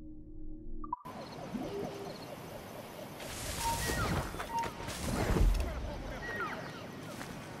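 Leaves rustle as someone pushes through dense bushes.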